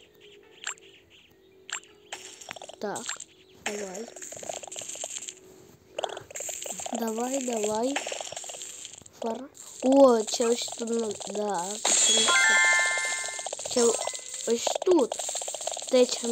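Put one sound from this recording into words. Bright chimes ring as diamonds are collected.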